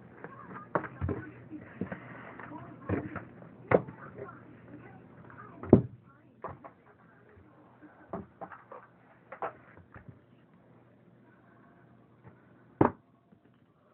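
Cardboard rustles and thumps as a box is handled.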